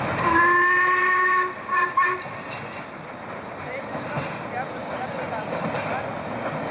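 A steam locomotive chuffs as it pulls away.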